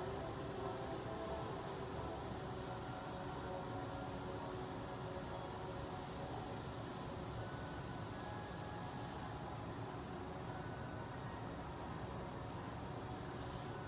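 Water rushes steadily, heard through a television speaker.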